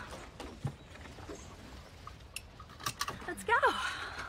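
A seatbelt buckle clicks.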